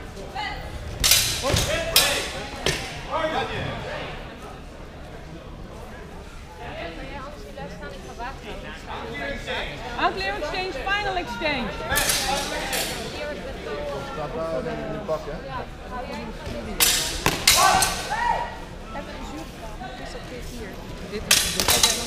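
Padded sticks clack and thud together in sharp bursts, echoing in a large hall.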